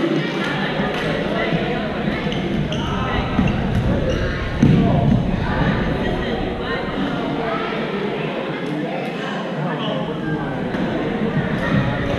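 Balls are struck sharply during play in a large echoing hall.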